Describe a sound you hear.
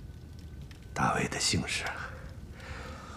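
A middle-aged man laughs softly close by.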